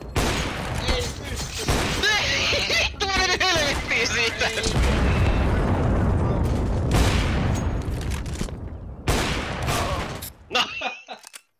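Rifle shots crack loudly, one after another.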